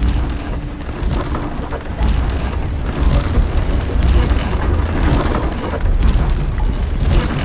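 A climber's hands and boots knock and scrape on a wooden pole in a steady rhythm.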